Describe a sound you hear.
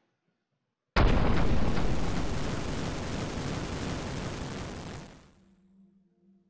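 A loud rushing whoosh swells and slowly fades.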